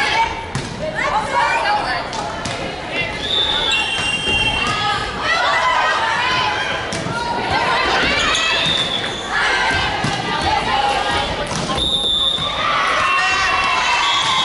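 A volleyball is struck with dull thuds.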